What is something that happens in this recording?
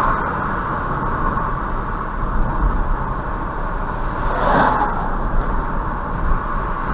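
Tyres roar steadily on a paved road.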